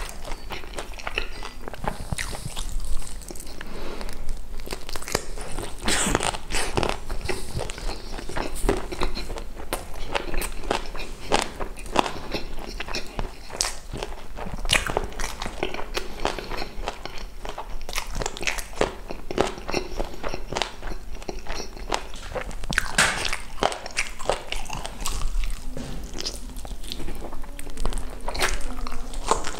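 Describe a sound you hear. A young man chews crunchy fried chicken loudly and close up.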